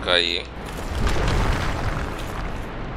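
A heavy body lands with a dull thud.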